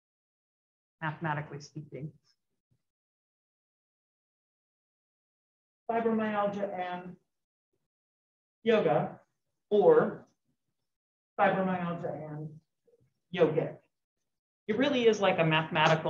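A woman speaks calmly through a microphone, with pauses.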